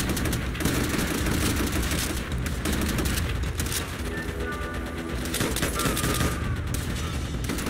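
Gunshots crack and boom repeatedly.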